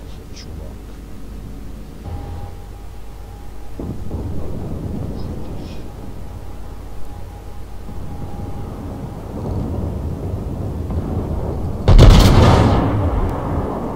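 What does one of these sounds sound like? Water rushes and rumbles steadily past a ship's hull.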